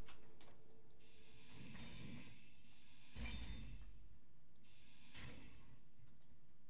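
A power grinder whirs in short bursts.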